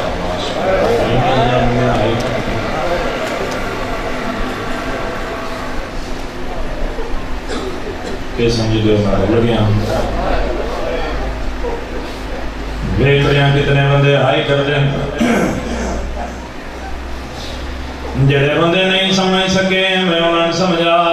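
A young man recites with strong feeling into a microphone, heard through loudspeakers with an echo.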